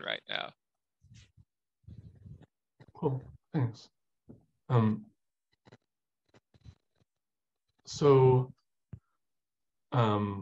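A young man speaks calmly and haltingly over an online call.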